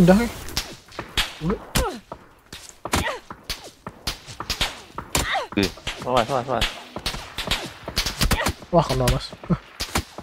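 Footsteps rustle quickly through dry grass.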